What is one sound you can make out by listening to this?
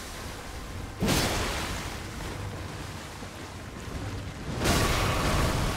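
A heavy blow lands with a loud thud during a fight.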